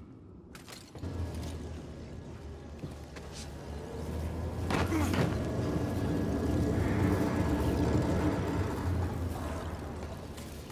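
An electric arc crackles and buzzes loudly.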